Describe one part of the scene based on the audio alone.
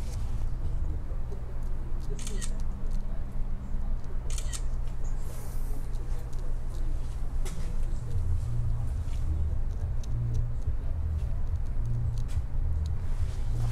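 A straight razor scrapes softly across beard stubble.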